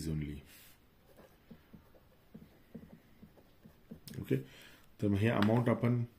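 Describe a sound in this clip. A pen scratches on paper as words are written.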